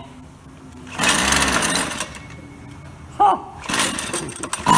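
A pull cord rasps as a small engine is cranked.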